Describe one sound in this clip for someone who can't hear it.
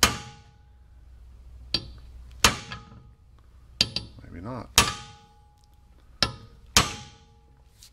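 Metal clicks and taps sharply, ringing briefly.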